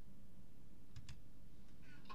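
A wooden chest lid thuds shut.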